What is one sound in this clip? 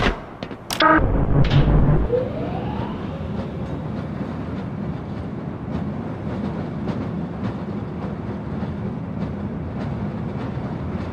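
A rail cart starts up and rumbles steadily along a track.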